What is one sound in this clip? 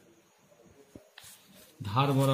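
Paper rustles as it is folded.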